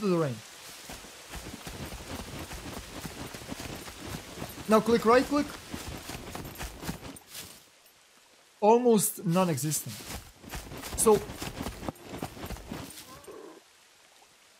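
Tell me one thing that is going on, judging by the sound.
Footsteps swish through tall grass.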